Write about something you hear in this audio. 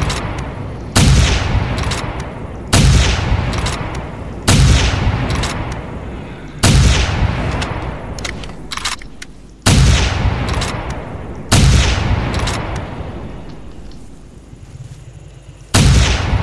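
A shotgun fires loud single blasts that boom and echo away outdoors.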